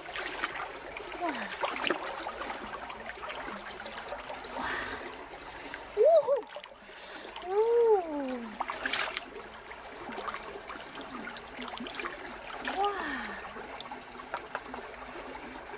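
Water splashes and swishes as hands scrub something in a shallow stream.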